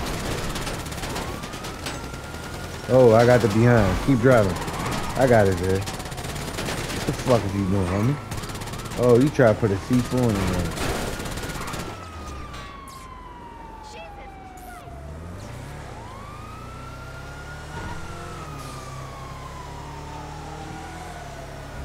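An off-road vehicle's engine runs and revs as it drives.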